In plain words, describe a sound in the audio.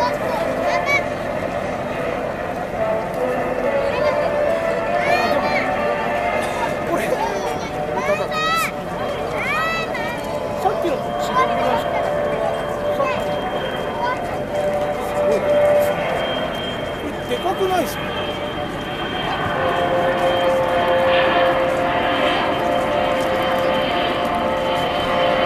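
A jet aircraft roars overhead as its engine hum grows louder.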